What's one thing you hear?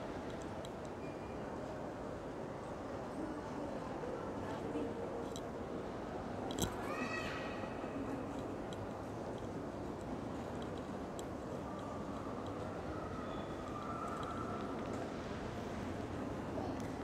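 A crowd murmurs softly throughout a large echoing hall.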